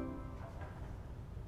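An organ chord rings out in a large echoing hall and stops.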